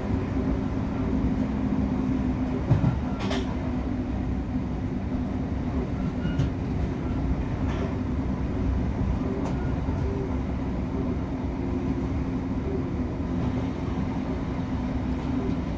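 An electric multiple-unit train rumbles along the track, heard from inside the carriage.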